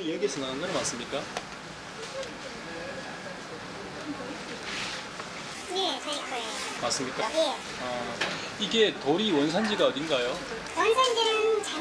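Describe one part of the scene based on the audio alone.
A man asks questions, close by.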